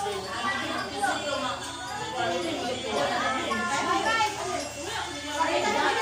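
Several women and children chatter at once in a room nearby.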